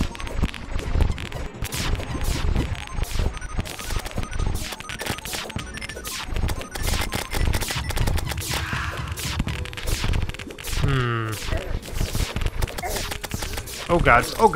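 Hits land on monsters with sharp thuds.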